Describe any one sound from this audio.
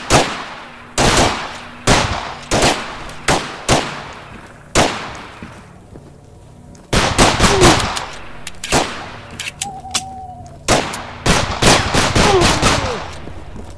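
A pistol fires loud shots that echo briefly.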